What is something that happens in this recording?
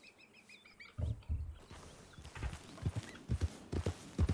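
A horse's hooves thud quickly on soft ground as it breaks into a gallop.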